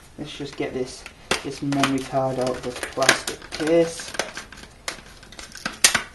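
Scissors snip through plastic packaging.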